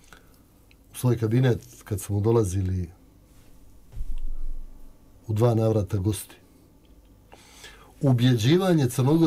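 A younger man answers calmly into a close microphone.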